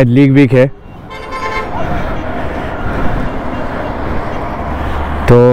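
Motorcycles and cars pass by on a road.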